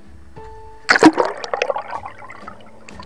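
Water splashes and bubbles close by.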